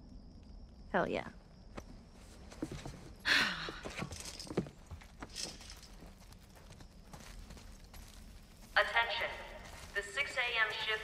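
A young woman speaks in a playful tone.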